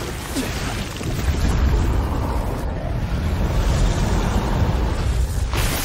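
A deep rumbling roar builds and grows loud.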